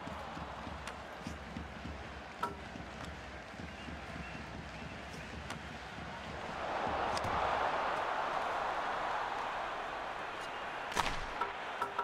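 Ice skates scrape across ice.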